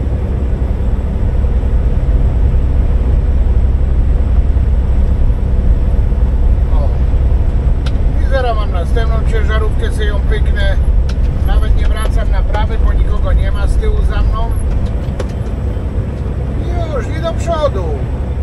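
A car engine hums and tyres rumble steadily on a highway.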